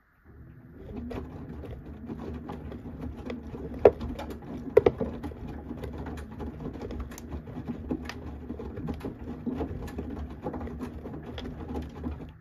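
Zips and buttons clack against a washing machine drum.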